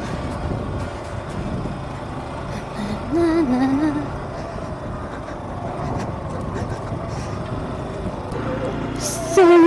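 A motorcycle engine rumbles and revs while riding.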